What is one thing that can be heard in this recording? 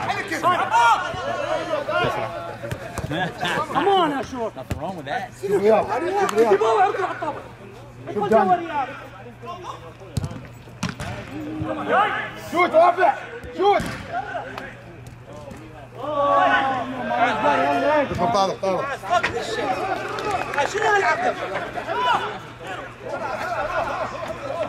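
Men talk and shout nearby, outdoors.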